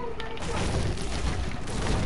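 A video game pickaxe strikes a tree with wooden thuds.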